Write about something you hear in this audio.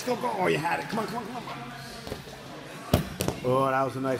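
Bodies thump onto a padded mat.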